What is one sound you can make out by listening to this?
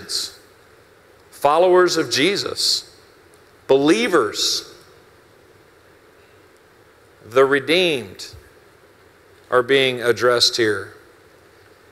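A middle-aged man speaks slowly and with emphasis through a microphone, with pauses between phrases, in an echoing hall.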